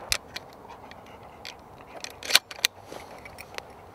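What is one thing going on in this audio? Shotgun shells click into a shotgun.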